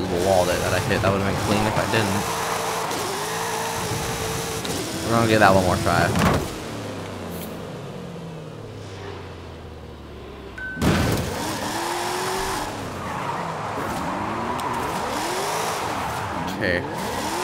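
Tyres screech as a car drifts.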